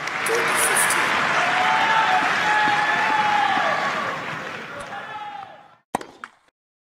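A crowd cheers and applauds in a large arena, then fades away.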